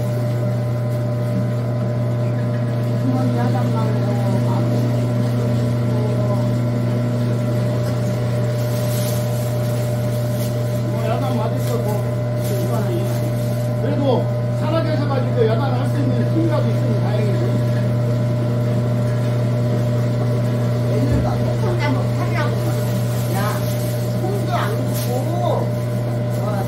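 A grinding machine hums steadily.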